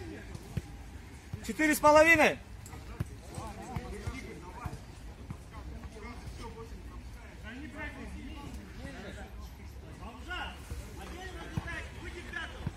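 Young men call out to each other across an outdoor football pitch.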